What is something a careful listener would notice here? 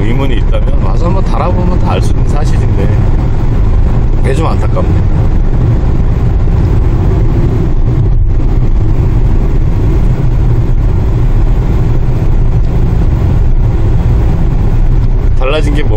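A vehicle's engine rumbles steadily while driving along a road.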